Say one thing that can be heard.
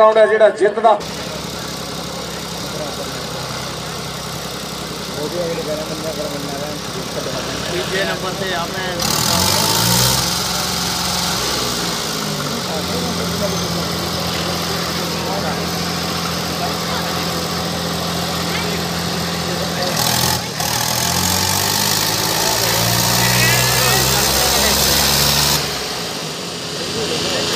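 Two tractor engines roar and strain, revving up and down.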